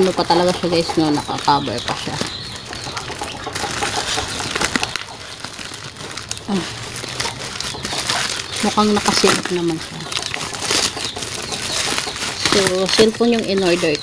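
A plastic mailing bag crinkles and rustles as hands tear it open.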